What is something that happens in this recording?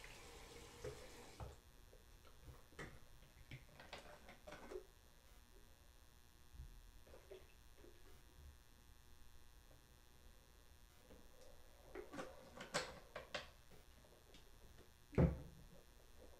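Bottles and small objects clatter and knock on a hard counter.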